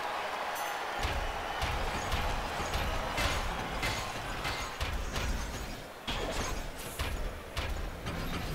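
Metal robots land heavy, clanging punches.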